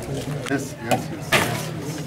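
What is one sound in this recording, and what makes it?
A coconut cracks as it is smashed on the ground.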